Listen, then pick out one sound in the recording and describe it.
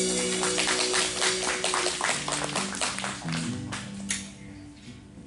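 A band plays guitars loudly and brings a song to an end.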